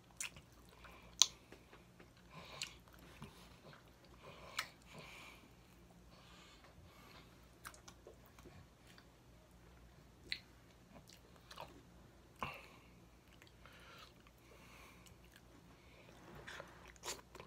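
A man chews and smacks his lips close up.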